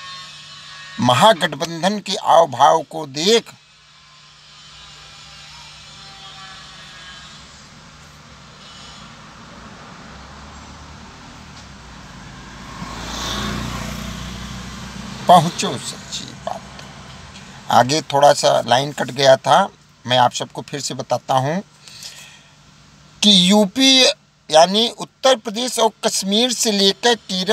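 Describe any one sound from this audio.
A man speaks with animation close to a phone's microphone.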